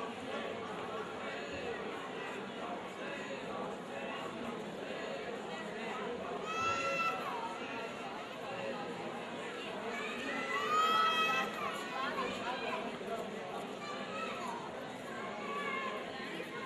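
A large crowd of men and women murmurs and calls out outdoors.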